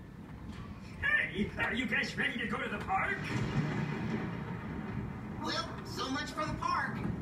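A cartoonish male voice talks with animation through loudspeakers.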